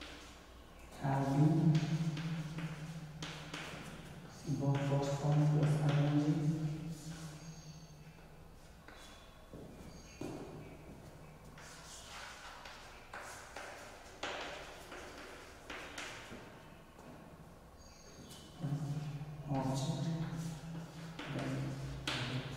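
A young man speaks clearly and steadily, close by.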